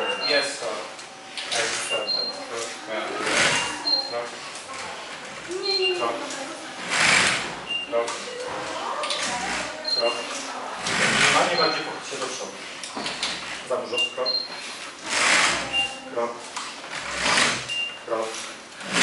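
A robotic exoskeleton's motors whir in bursts with each step.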